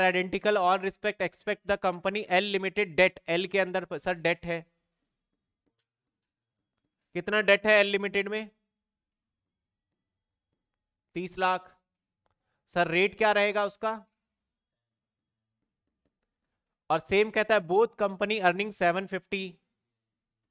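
A man speaks calmly into a close microphone, explaining in bursts with pauses.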